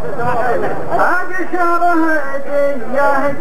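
A man speaks loudly into a microphone, heard through loudspeakers.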